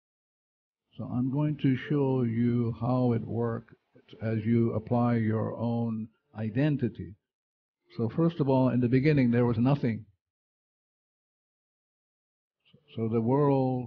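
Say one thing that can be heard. A man speaks with animation through a headset microphone.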